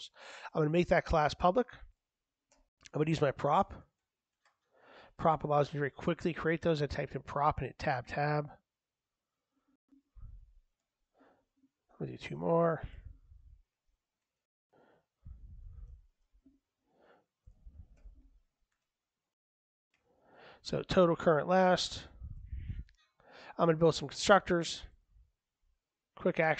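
A man talks calmly into a microphone, pausing between phrases.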